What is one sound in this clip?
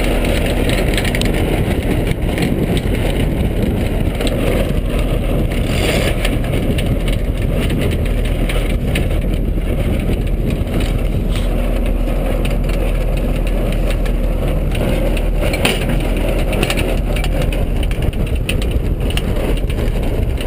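Ropes rattle and knock against a boat.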